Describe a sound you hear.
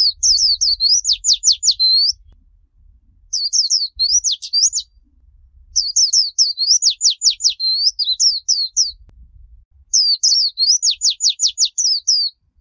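A small bird sings loud, rapid chirping trills in bursts.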